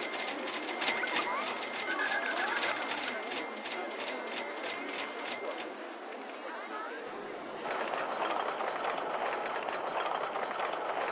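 Roller coaster cars rattle along a track.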